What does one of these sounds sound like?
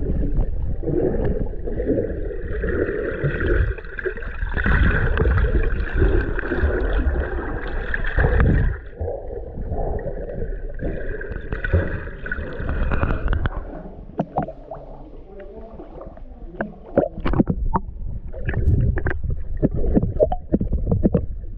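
Water rumbles and bubbles, heard muffled from underwater.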